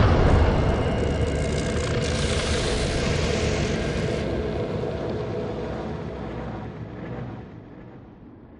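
A magical burst roars and crackles, then slowly fades away.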